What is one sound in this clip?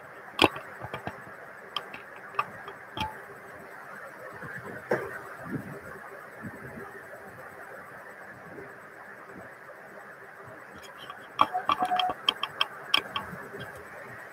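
Clothing rustles and scrapes against a microphone close up.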